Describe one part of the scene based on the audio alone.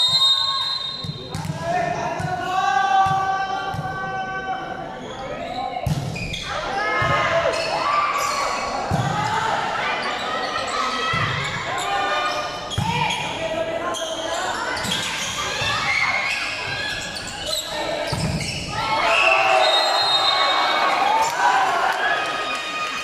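Young spectators shout and cheer in a large echoing hall.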